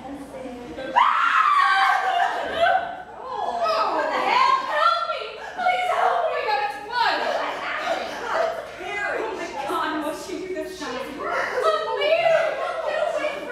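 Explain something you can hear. Young women speak with animation on a stage, heard from a distance in a hall.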